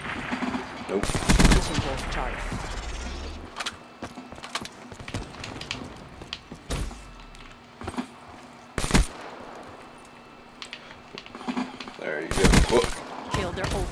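Rapid gunfire rings out in short bursts.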